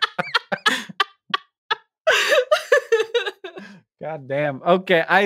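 A woman laughs heartily over a headset microphone in an online call.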